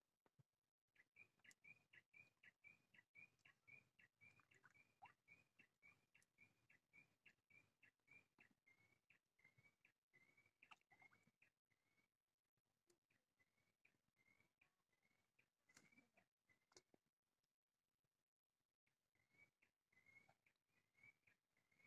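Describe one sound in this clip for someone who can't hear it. A fishing reel clicks rapidly as line is wound in.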